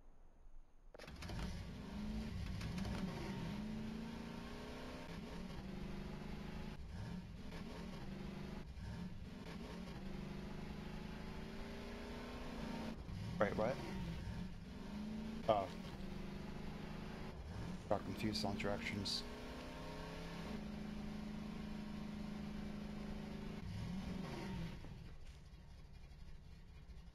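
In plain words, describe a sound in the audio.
A quad bike engine drones and revs up and down.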